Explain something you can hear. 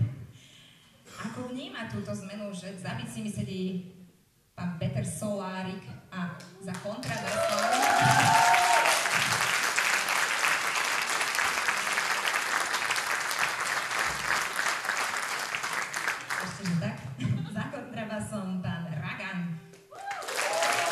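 A young woman speaks calmly into a microphone, heard over loudspeakers in an echoing hall.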